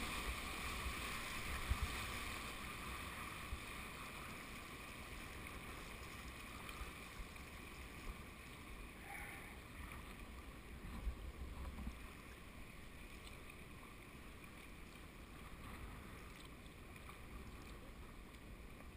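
River rapids rush and splash steadily close by.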